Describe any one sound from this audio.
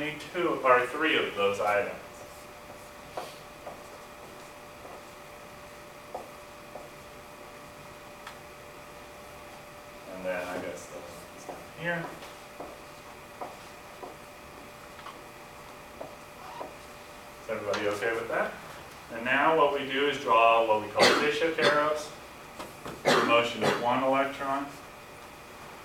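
A man lectures calmly, pausing often.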